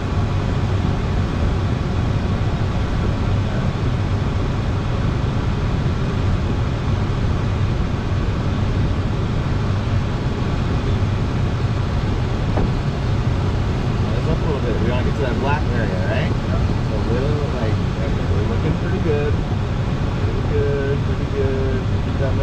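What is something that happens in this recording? Wind rushes loudly and steadily past a glider's cockpit.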